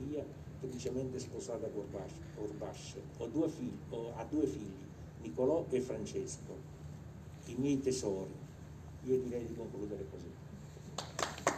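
An elderly man speaks calmly and solemnly through a microphone outdoors.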